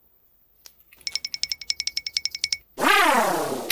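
A wind-up toy clicks rapidly as it is wound.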